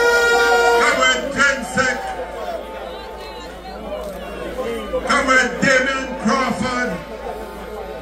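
Men and women in the crowd shout loudly in short bursts.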